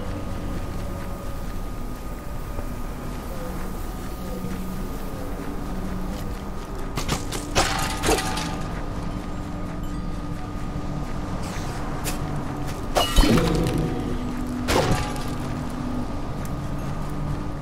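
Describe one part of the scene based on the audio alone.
Calm background music plays steadily.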